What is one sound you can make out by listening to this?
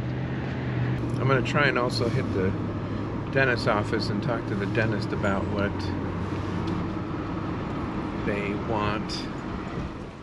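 A man talks calmly into a nearby microphone.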